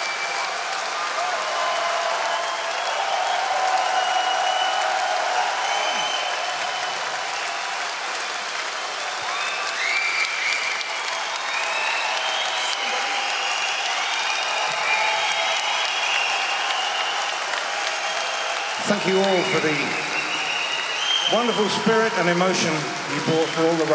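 A large crowd cheers and claps in a big echoing hall.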